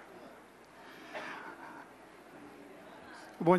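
A middle-aged man begins speaking into a microphone.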